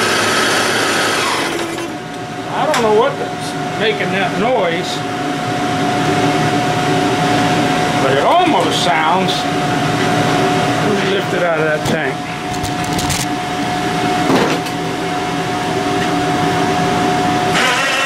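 An outboard motor idles with a steady rumbling hum, heard up close.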